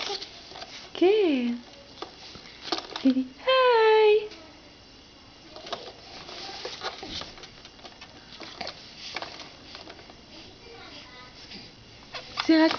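A baby coos and squeals close by.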